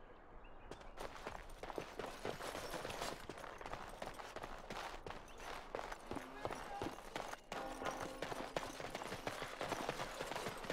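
Armoured footsteps clatter on cobblestones.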